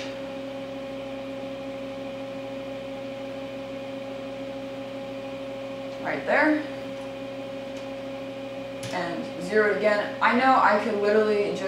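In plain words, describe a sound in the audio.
A milling machine spindle hums steadily.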